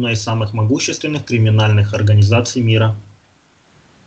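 A man reads out aloud through a microphone.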